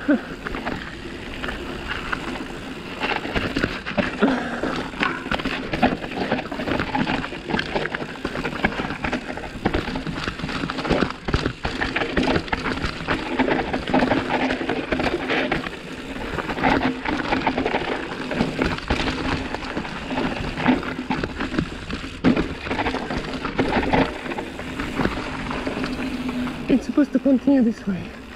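A bicycle rattles and clatters over bumps and jumps.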